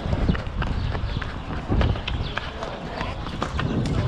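Shoes thud and scrape on stone paving as people jump and land.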